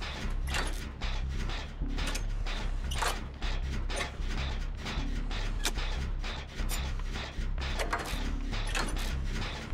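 A generator engine rattles and chugs steadily.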